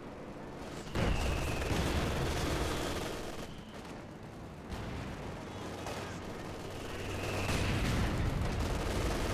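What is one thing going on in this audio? Gunfire crackles.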